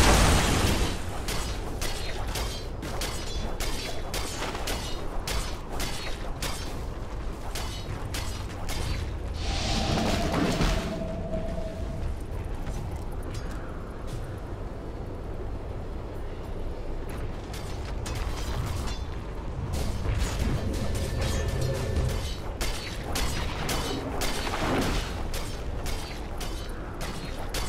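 Fighting sound effects from a video game clash and crack in quick bursts.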